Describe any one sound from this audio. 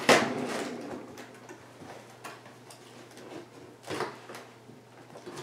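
Cardboard packaging rustles and scrapes as hands pull at a box.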